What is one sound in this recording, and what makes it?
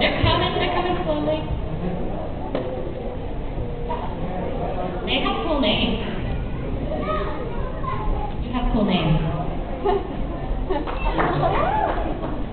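A man speaks into a microphone on stage, heard through loudspeakers in a large hall.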